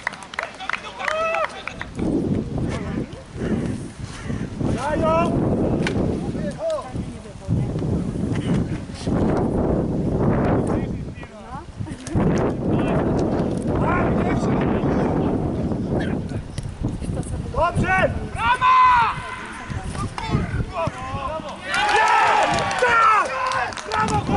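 Men shout to one another across an open field.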